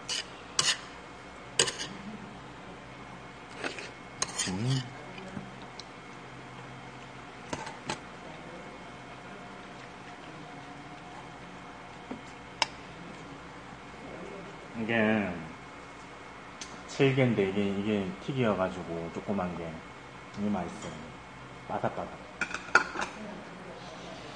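Metal chopsticks and spoons clink against dishes.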